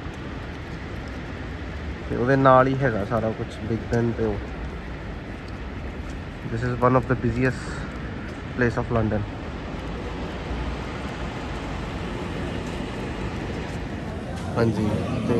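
Traffic rumbles steadily in the distance on a wet street.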